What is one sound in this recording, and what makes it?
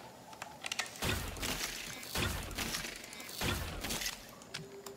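A sword whooshes and strikes with heavy thuds.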